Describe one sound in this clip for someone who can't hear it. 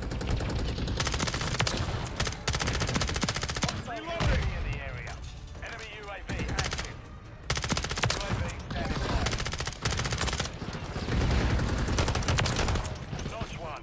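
Rapid gunfire bursts loudly in quick succession.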